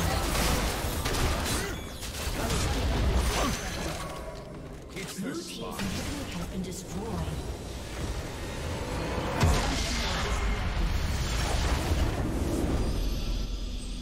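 Fantasy battle effects crackle and boom in quick bursts.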